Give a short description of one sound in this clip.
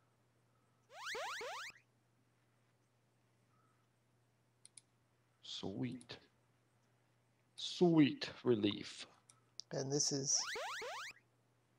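A retro video game plays a quick rising, shimmering spell sound.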